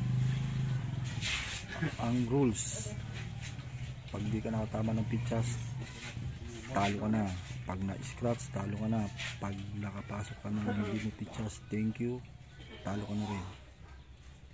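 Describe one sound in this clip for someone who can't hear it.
Men talk close by.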